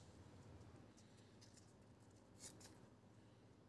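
Small wooden strips click as they are set down on plywood.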